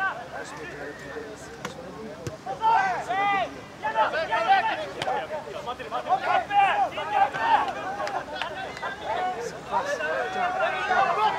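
A crowd of spectators murmurs and cheers outdoors.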